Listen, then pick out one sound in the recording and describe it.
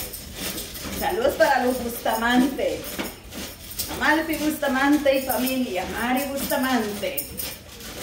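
A woman sings nearby.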